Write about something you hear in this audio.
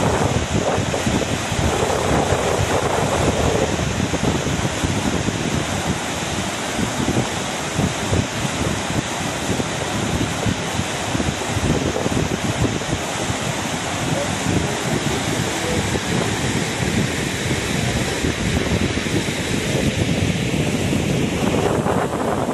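Water rushes and roars loudly over a weir.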